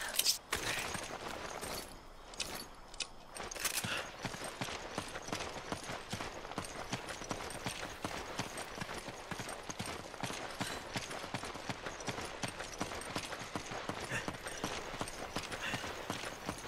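Footsteps crunch quickly on dirt and gravel.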